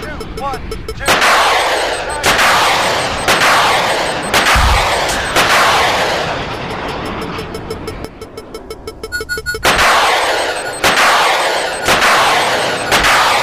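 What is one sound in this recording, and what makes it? A vehicle's rapid-fire gun fires loud booming shots in quick succession.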